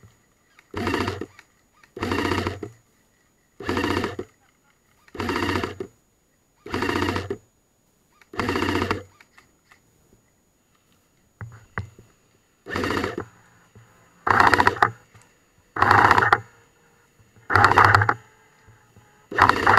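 An airsoft rifle fires short rapid bursts close by.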